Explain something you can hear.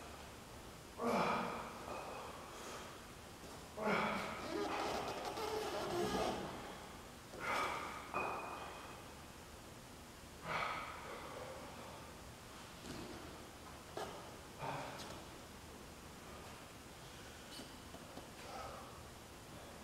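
A man breathes out hard with each repetition of an exercise.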